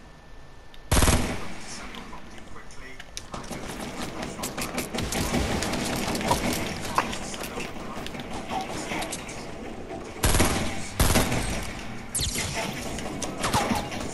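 Gunshots crack loudly.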